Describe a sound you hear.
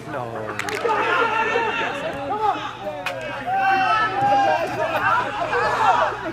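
Several men shout to each other across an open outdoor pitch.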